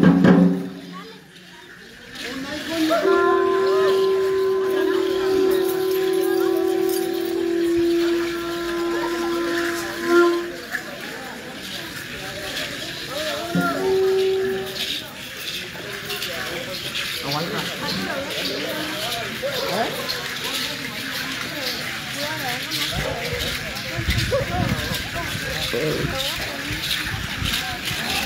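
Seed-pod rattles on dancers' ankles shake and clatter in rhythm with stamping feet.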